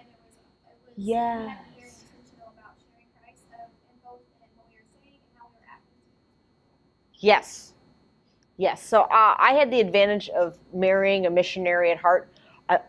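A woman speaks clearly to a room, pausing between phrases.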